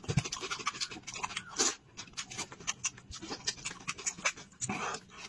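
A man chews wet food loudly, close to the microphone.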